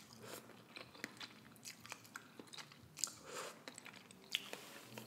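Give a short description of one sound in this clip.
A woman slurps noodles close to a microphone.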